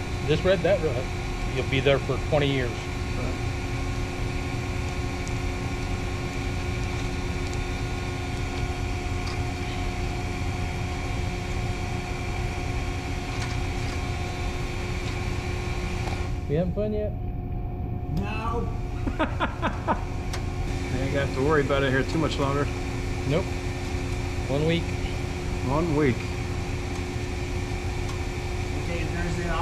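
Machinery hums steadily in the background.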